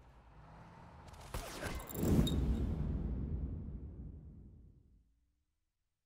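An explosion booms nearby and rumbles away.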